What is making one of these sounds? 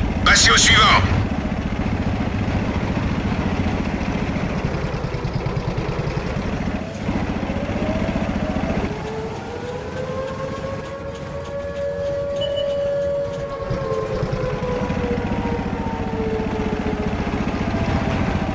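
A tank engine rumbles and clatters steadily.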